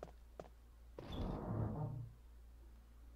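A heavy door creaks open with a low rumble.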